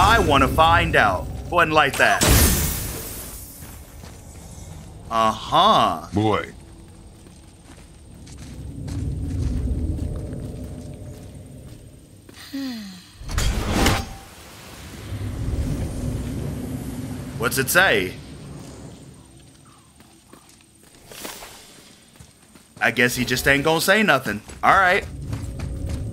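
A man talks and exclaims with animation close to a microphone.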